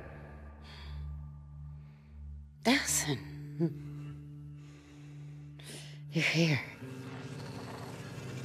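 A young man speaks softly.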